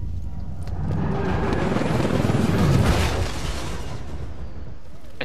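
A helicopter's rotors roar loudly overhead and then fade.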